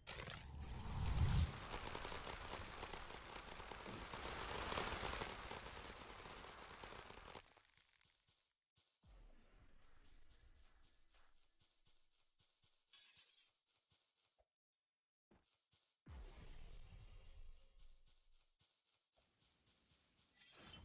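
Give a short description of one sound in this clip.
Quick footsteps patter on sand.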